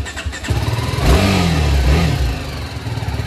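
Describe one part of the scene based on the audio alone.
A motorcycle engine revs briefly.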